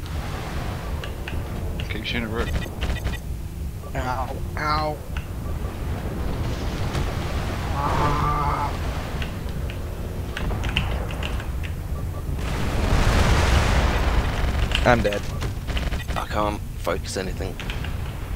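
A mech's engine hums low and steady.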